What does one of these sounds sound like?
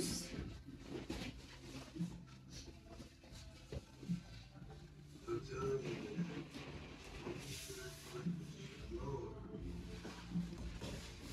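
A small child thumps and bumps softly against foam cushions while climbing.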